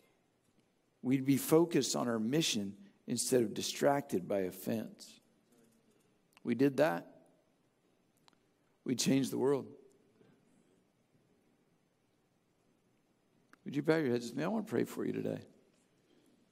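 A middle-aged man speaks calmly and deliberately into a microphone, with pauses.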